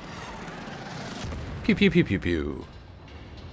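Laser guns fire in quick bursts overhead.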